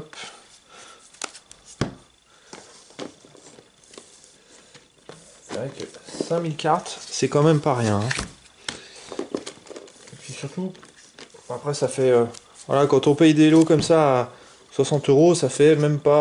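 Playing cards tap and slap softly onto a stack.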